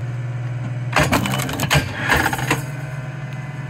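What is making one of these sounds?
Wood cracks as a log splits apart.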